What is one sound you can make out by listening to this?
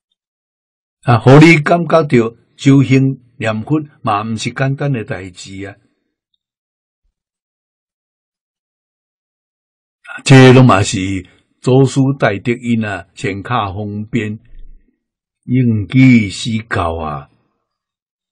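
An elderly man speaks calmly and warmly into a close microphone, with pauses.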